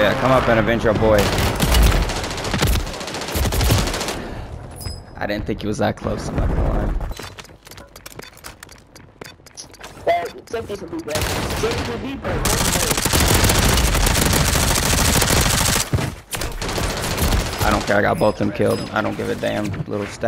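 Gunfire from a video game rattles in loud bursts.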